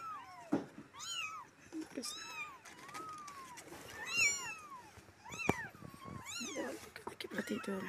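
Kittens mew in high, thin cries, over and over.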